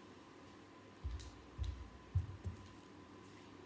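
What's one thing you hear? Bare footsteps thud on a hard floor.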